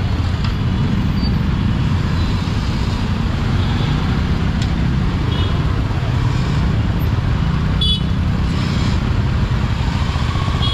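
Motorcycle engines idle and rumble in heavy traffic nearby.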